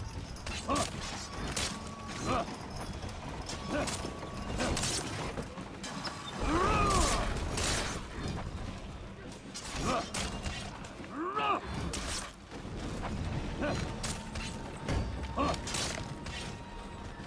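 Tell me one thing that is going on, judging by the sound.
Swords clash and strike repeatedly in a battle.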